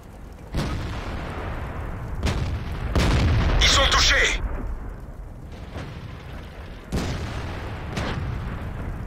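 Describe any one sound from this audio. A tank cannon fires with loud, heavy booms now and then.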